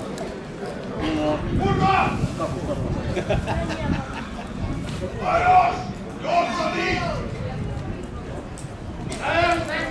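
A man talks loudly and with animation close by.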